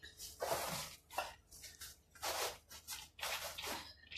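Liquid pours from a plastic bottle.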